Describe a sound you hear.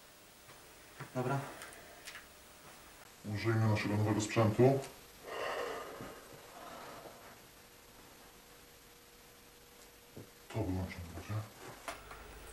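A young man speaks calmly close by, in short bursts.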